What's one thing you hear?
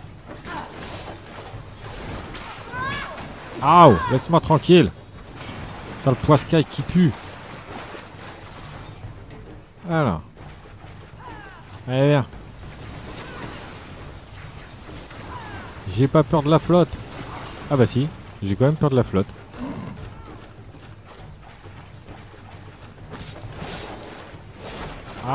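Blades swish and clang in a fast fight.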